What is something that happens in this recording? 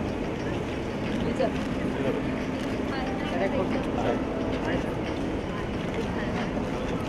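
A crowd of young men talks and calls out nearby outdoors.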